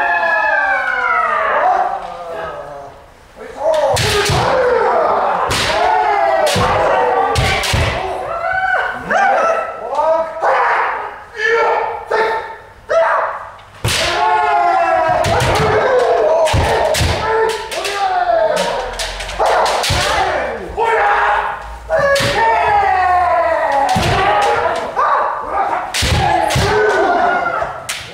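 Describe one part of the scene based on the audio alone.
Several kendo fencers shout loud, drawn-out battle cries in an echoing wooden hall.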